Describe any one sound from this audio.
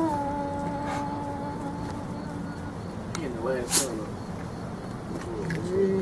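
A dog whines and yelps close by.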